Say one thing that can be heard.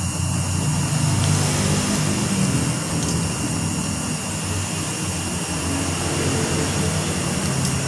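A spoon scrapes against a bowl.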